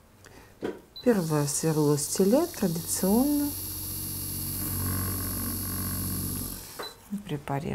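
A dental drill whirs steadily.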